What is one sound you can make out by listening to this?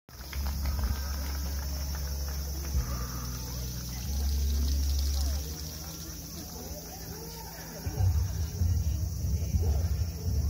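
A crowd of adults chatters nearby.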